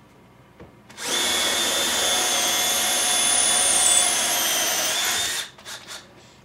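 A cordless drill whirs steadily as it bores into wood.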